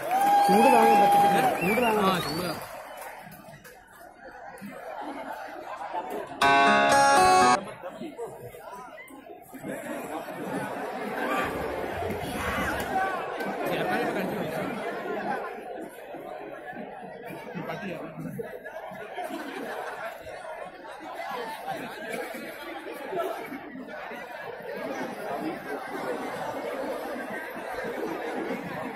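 A large crowd of students chatters outdoors.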